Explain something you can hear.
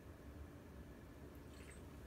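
A man sips a drink quietly.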